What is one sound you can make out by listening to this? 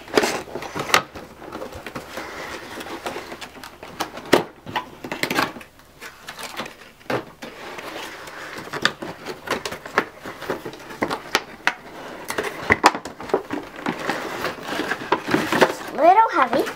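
Cardboard flaps rustle and scrape as a box is opened by hand.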